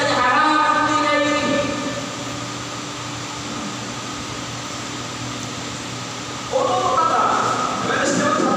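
An elderly man speaks with animation through a microphone in an echoing room.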